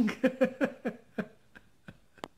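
An elderly man laughs heartily close by.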